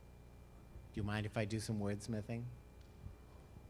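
An elderly man speaks calmly and good-humouredly into a microphone.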